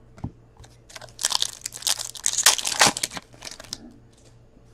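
Trading cards rustle and flick against each other.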